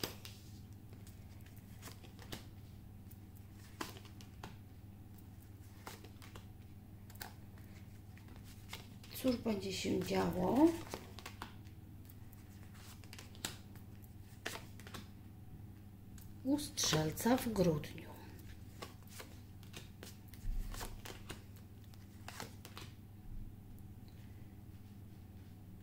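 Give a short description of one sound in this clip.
Playing cards are laid down one by one on a table with soft taps.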